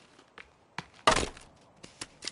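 An axe strikes with a loud thud.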